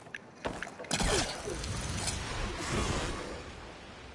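A big splash hits the water.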